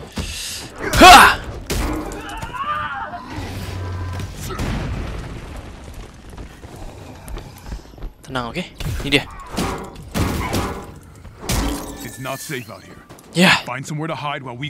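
Punches and blasts thud and crash in a fight.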